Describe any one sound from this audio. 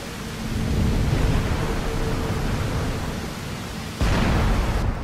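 A waterfall pours and splashes steadily.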